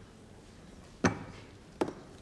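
A briefcase thuds down onto a table.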